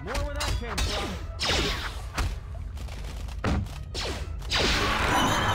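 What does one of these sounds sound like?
Blades strike in a fight.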